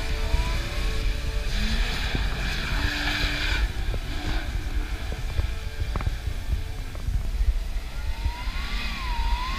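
A vehicle engine roars and revs as it climbs a sand slope.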